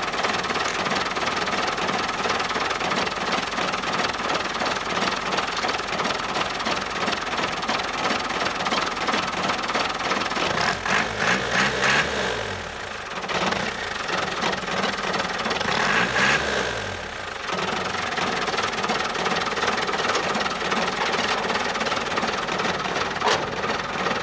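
An old pickup truck engine idles with a steady rattle.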